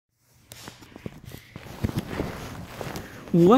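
A phone's microphone rubs and knocks as it is handled.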